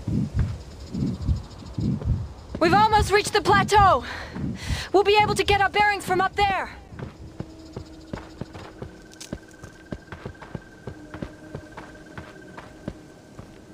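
Footsteps scuff and tap on rocky ground.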